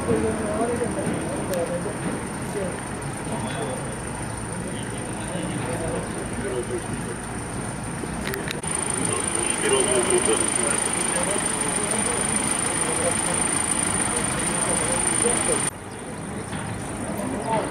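Men talk in low voices nearby, outdoors.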